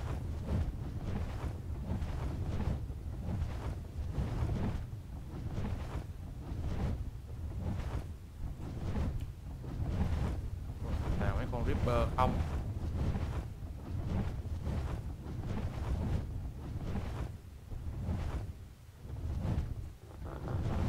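Large wings beat in steady, heavy flaps.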